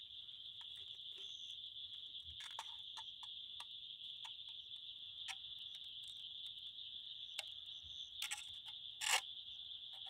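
A small wood fire crackles and pops.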